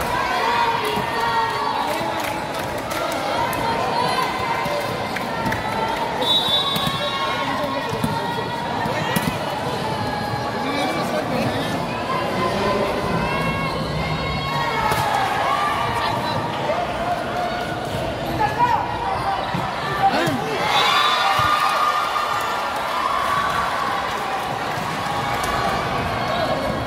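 A crowd of young people chatters and cheers, echoing in a large hall.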